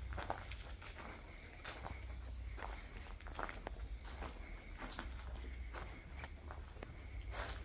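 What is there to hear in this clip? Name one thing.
Footsteps crunch over dry leaves and debris.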